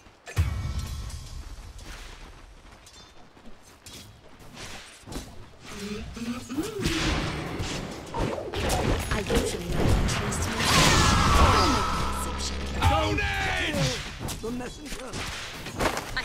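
Magical blasts and impacts boom.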